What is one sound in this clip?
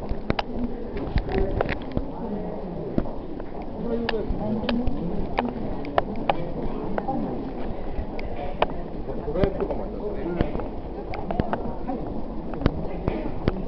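Footsteps click on a hard floor.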